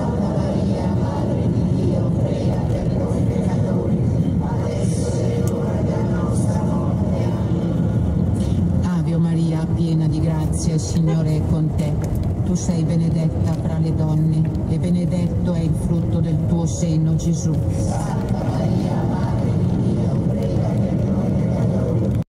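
Tyres roll on wet road.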